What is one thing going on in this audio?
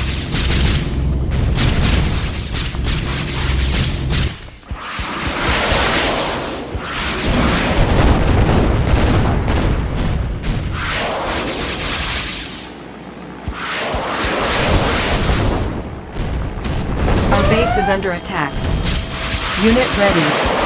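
Explosions and gunfire crackle in a battle.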